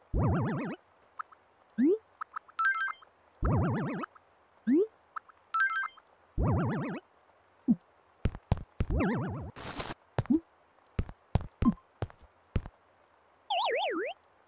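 Short electronic chimes and blips sound as menu items are picked.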